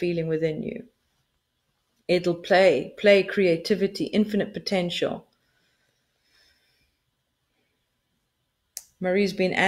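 A middle-aged woman speaks calmly over an online call, pausing between phrases.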